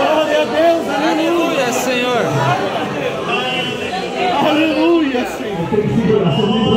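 A large congregation of men and women sings a hymn together in an echoing hall.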